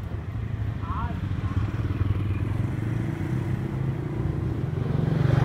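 A motorbike engine rumbles steadily close by.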